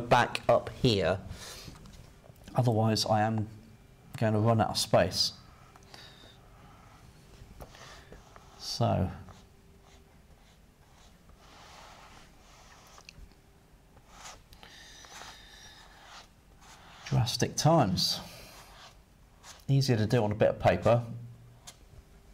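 A man talks calmly and clearly, close to a microphone.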